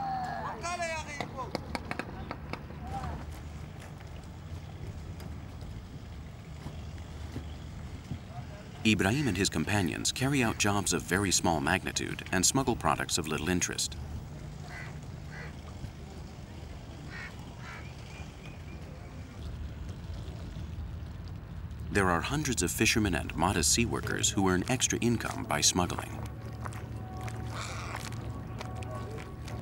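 Water laps gently against a wooden boat's hull.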